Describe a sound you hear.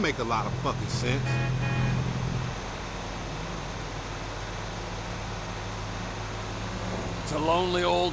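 A truck engine hums steadily as it drives along a highway.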